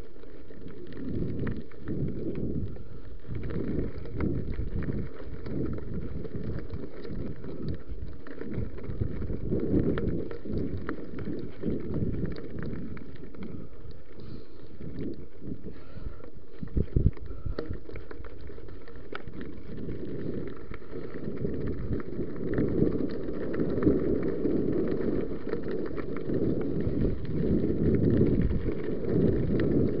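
Bicycle tyres crunch and rattle over loose gravel.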